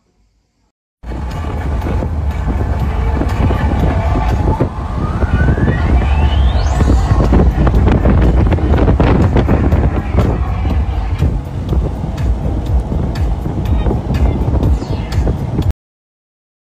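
Wind roars loudly past an open car moving at speed.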